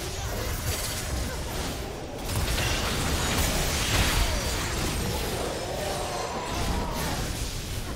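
Spell effects crackle and burst in a fight.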